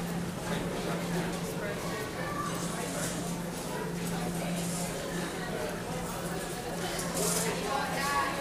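Crowd chatter echoes in a large hall.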